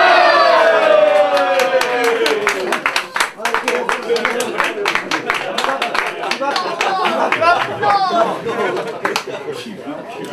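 An audience claps in a steady rhythm.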